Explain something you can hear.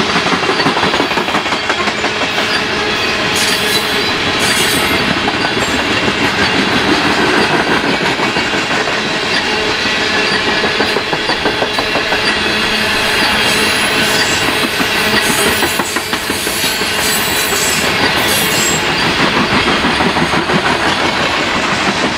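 Steel wheels squeal and screech against the rails.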